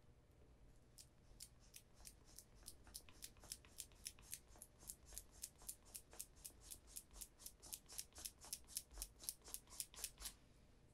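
A brush rubs quickly back and forth on shoe leather.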